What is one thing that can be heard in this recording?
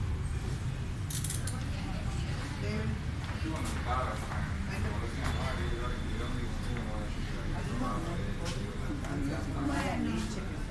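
Women talk tensely nearby.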